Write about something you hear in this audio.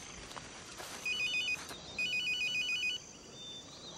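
A phone beeps as its keys are pressed.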